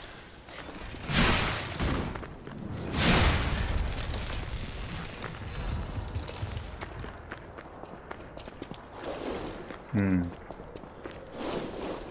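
Footsteps crunch on gravel and dirt.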